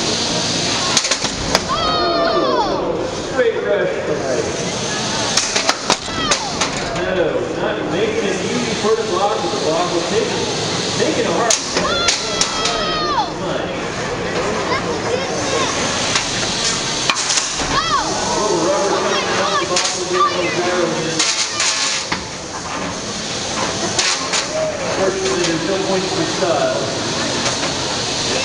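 Metal robots clatter and bang against each other.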